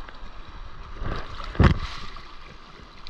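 A wave breaks with a loud splash right up close.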